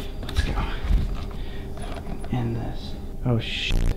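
Someone handles a small lamp with soft knocks and rustles.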